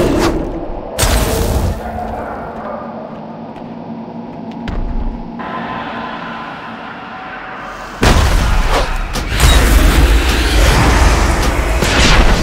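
Fiery spell blasts roar and crackle.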